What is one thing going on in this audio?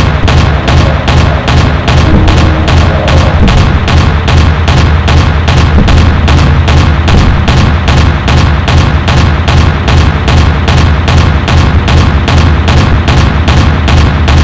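Explosions boom in the sky.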